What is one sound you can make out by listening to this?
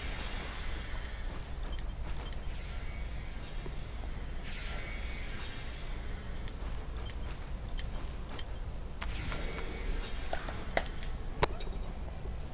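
Magic whooshes and chimes sound from a game.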